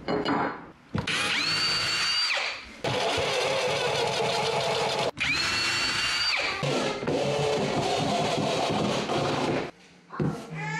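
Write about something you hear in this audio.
A cordless drill whirs, driving screws in bursts.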